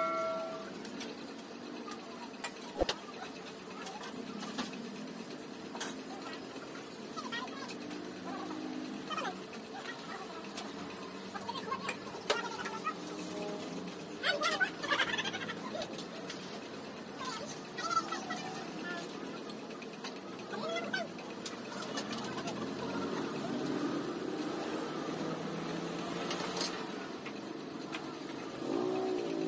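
Men and women talk in the background.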